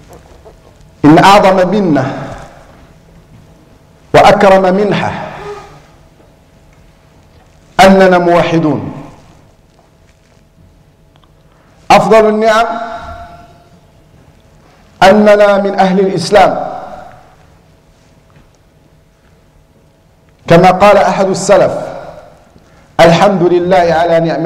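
A man speaks through a headset microphone in short, loud bursts with pauses between them.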